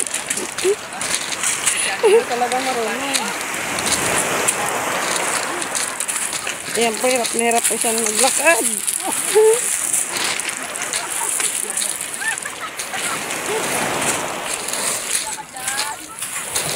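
Footsteps crunch on loose pebbles.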